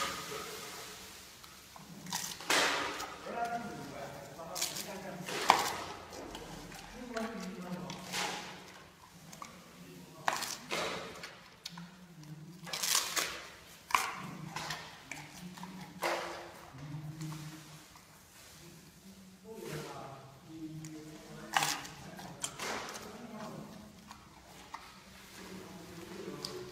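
A panda chews bamboo noisily.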